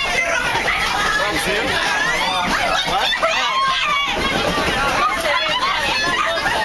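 A crowd of young women screams and shrieks close by.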